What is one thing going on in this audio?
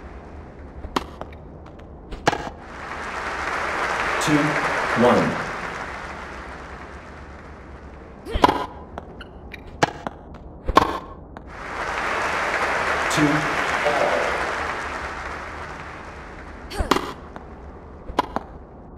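A tennis ball is struck with sharp pops.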